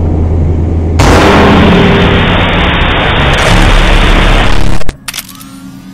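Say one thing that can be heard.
Loud static hisses and crackles.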